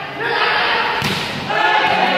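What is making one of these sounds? A ball is kicked with a sharp thump.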